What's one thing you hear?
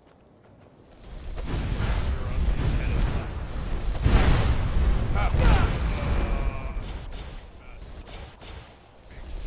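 Flames roar and crackle in bursts.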